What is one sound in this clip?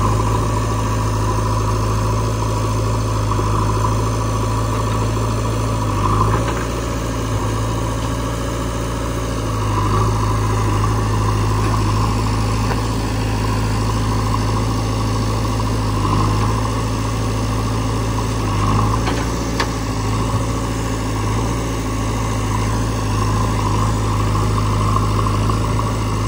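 A backhoe loader's diesel engine runs steadily nearby.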